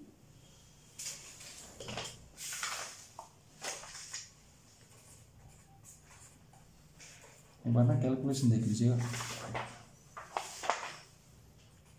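Sheets of paper rustle as they are handled.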